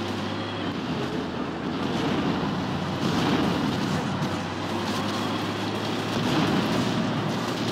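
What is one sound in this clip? A tank cannon fires in a video game.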